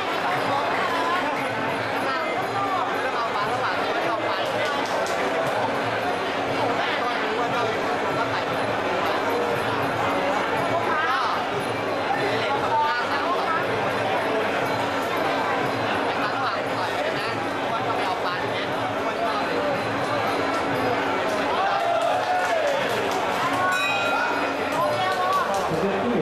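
A large crowd shouts and cheers loudly in an echoing arena.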